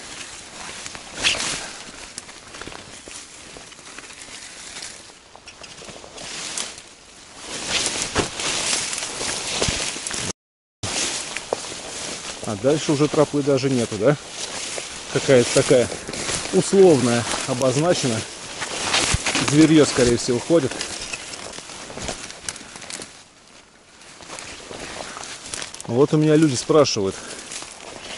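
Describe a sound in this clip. Leaves and branches rustle and snap as someone pushes through dense brush.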